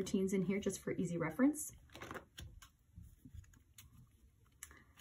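Paper pages rustle and flip as they are turned.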